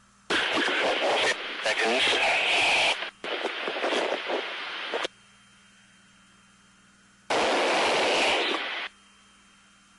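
A man speaks in short bursts over a crackly radio intercom.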